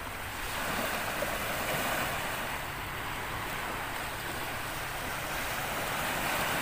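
A swimmer splashes through the sea at a distance.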